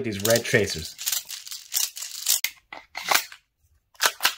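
Small plastic pellets click as they are pushed into a magazine.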